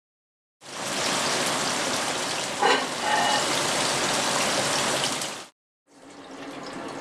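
Fish sizzles loudly in a hot frying pan.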